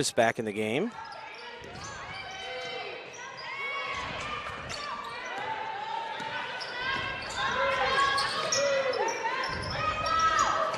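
Sneakers squeak sharply on a hardwood court, over and over.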